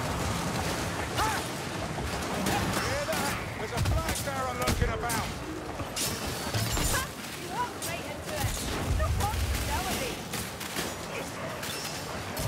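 Swords clash and slash against armour.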